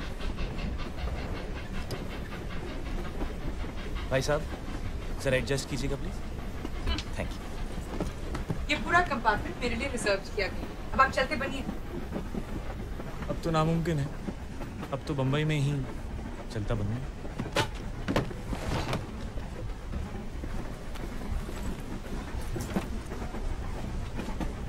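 A train rumbles steadily along the tracks.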